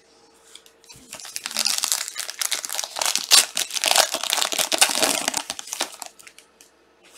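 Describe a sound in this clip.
A plastic wrapper crinkles and tears as hands open a pack.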